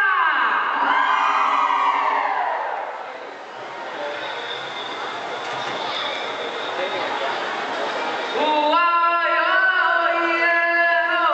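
A group of men and women sing together in a loud chorus.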